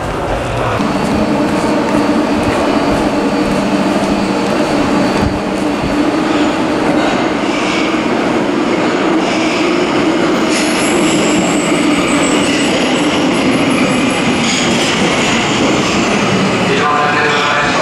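A train hums steadily while standing at a platform.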